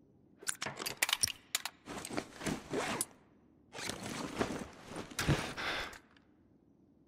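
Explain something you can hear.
A gun's metal parts click and rattle as it is handled.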